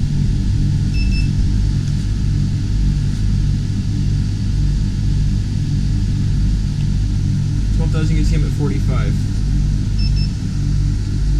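A handheld thermometer beeps briefly twice.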